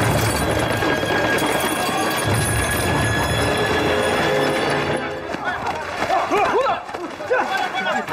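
Boots thud on a hard street as soldiers run.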